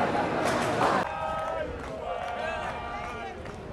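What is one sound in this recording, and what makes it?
A crowd chants outdoors.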